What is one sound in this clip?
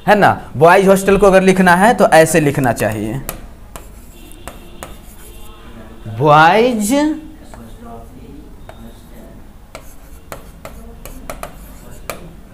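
A marker squeaks on a board.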